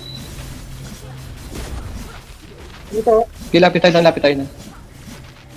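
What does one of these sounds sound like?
Magical blasts and strikes clash in a fast fight.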